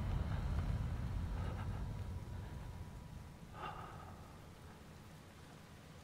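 A man breathes heavily close by.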